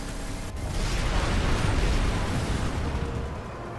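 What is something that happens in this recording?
Explosions boom in quick succession.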